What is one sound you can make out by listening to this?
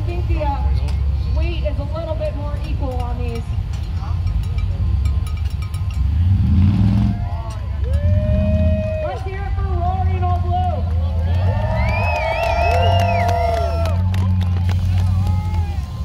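Men shout and call out in a crowd.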